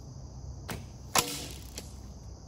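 A bowstring snaps as an arrow is released.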